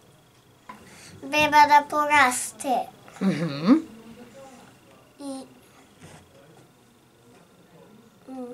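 A young boy speaks close to a microphone, with lively rises and falls in his voice.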